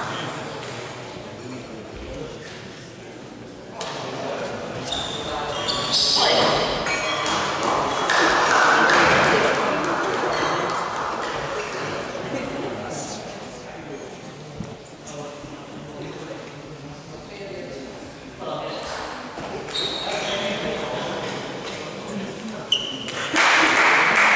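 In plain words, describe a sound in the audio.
A crowd of men and women chatters and cheers in a large echoing hall.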